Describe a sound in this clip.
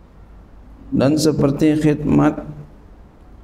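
A man speaks slowly into a microphone, heard over a loudspeaker in a large echoing hall.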